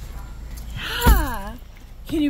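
A car door slams shut nearby.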